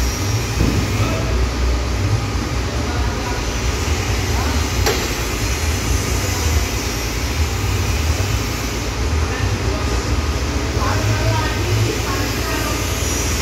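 A large metal panel creaks and rattles as it slowly swings open.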